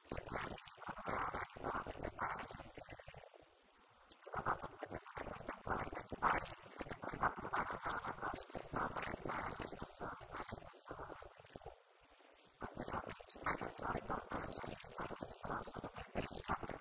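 A woman speaks calmly into a microphone, heard through a loudspeaker in a room with some echo.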